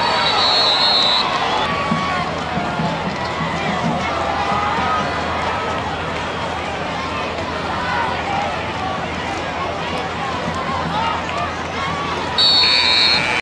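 A crowd murmurs and chatters in the distance outdoors.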